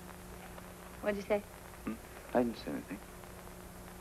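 A young woman speaks softly and anxiously, close by.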